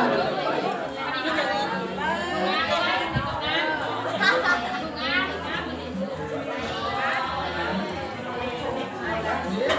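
A young woman speaks softly to a toddler close by.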